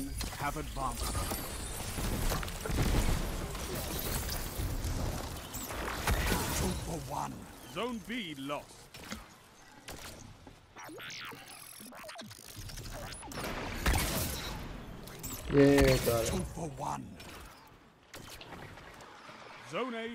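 Video game guns fire in loud bursts.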